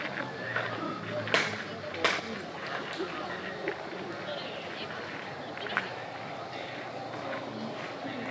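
Footsteps crunch on gravel outdoors.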